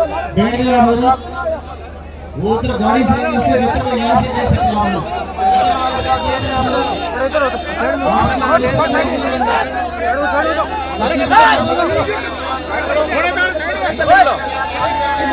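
A large crowd of men chants and cheers loudly outdoors.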